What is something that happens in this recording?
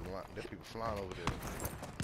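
A rifle's magazine clicks into place during a reload.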